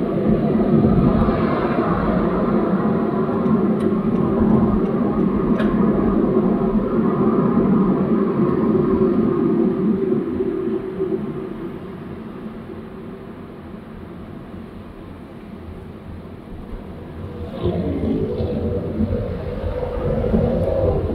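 A car's engine hums steadily from inside while driving.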